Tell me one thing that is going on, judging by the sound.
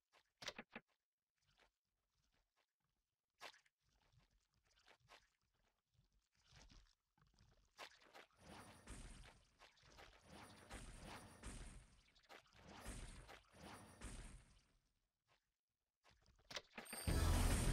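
Sword slashes whoosh and strike in quick bursts.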